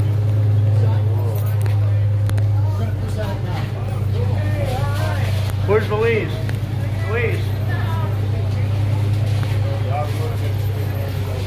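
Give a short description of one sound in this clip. Several men talk nearby in a loose, casual crowd.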